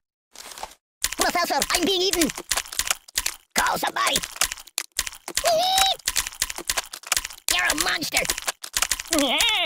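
Cartoon fish snap and bite rapidly, over and over.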